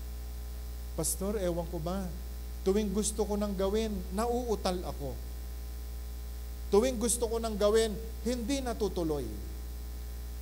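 A middle-aged man speaks with animation into a microphone, with pauses.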